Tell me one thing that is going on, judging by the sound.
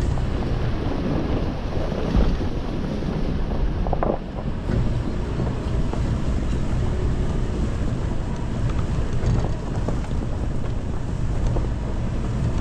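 A vehicle body rattles and knocks over bumps.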